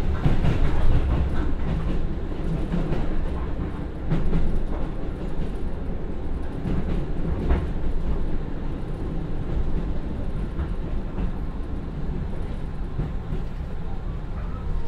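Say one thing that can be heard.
A diesel train engine rumbles steadily while running.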